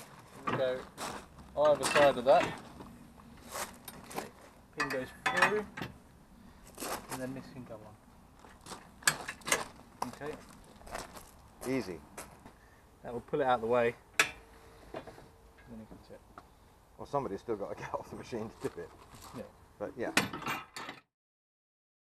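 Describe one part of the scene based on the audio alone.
Metal parts clank and click as they are fitted together.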